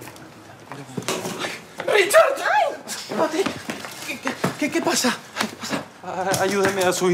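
A man shouts angrily during a scuffle.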